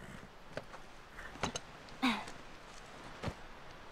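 Saddle leather creaks as a rider climbs onto a horse.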